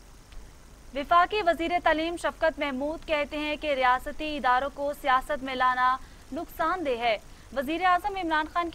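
A young woman reads out the news calmly, close to a microphone.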